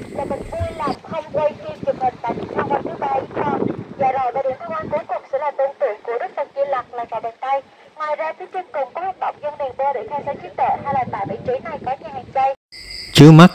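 A woman speaks outdoors, explaining to a group.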